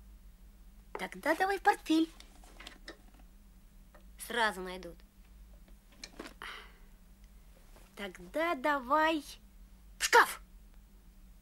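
Two young boys talk with animation.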